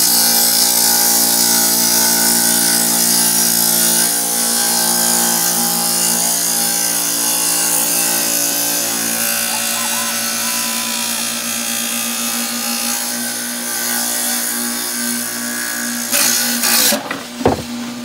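A saw blade grinds loudly through tile.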